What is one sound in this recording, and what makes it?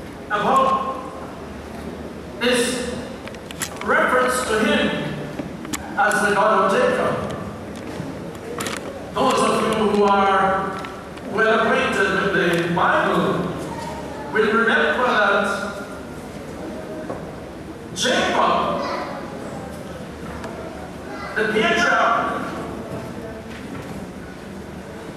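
An elderly man speaks slowly and forcefully through a microphone in an echoing hall.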